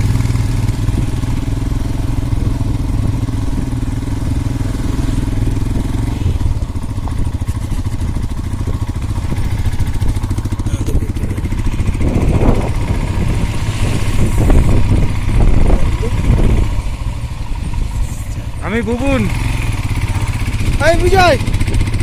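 A motorcycle engine hums steadily nearby.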